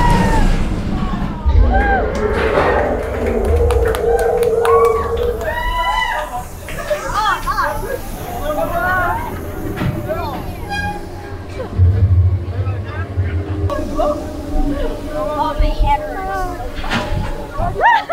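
A ride car rumbles along a track.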